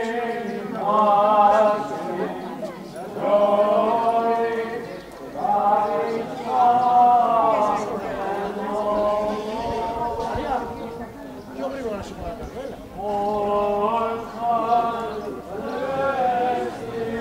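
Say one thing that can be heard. A man chants a slow, drawn-out melody outdoors.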